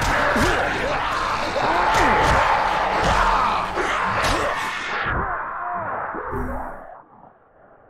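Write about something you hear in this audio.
Zombies snarl and growl close by.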